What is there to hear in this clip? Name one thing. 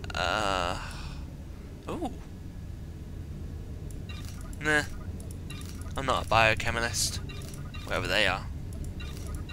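Short electronic chimes sound as items are moved.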